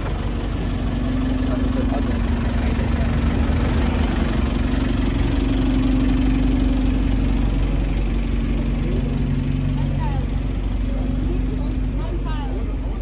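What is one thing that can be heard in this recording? A bus engine idles and hums loudly close by.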